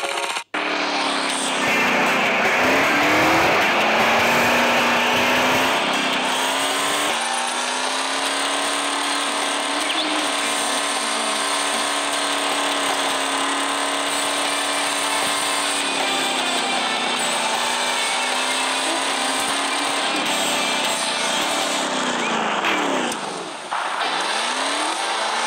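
A truck engine drones steadily, rising and falling as it revs.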